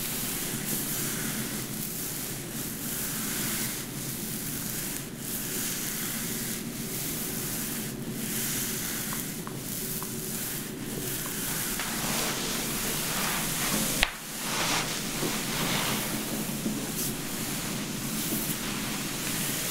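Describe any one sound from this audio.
Fingers rub and rustle through damp hair close by.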